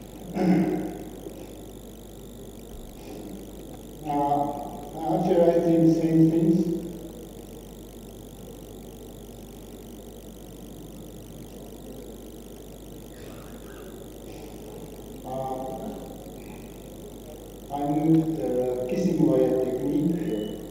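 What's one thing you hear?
A man speaks calmly in short bursts with long pauses.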